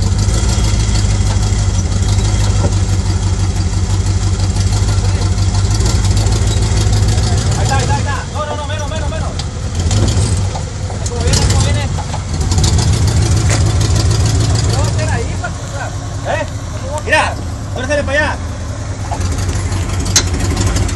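An off-road vehicle's engine rumbles and revs as it climbs over rock.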